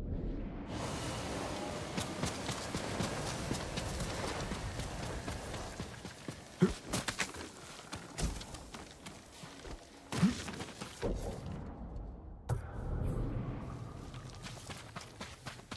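Footsteps crunch along a dirt path.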